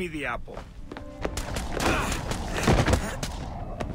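A body thuds heavily onto a hard floor.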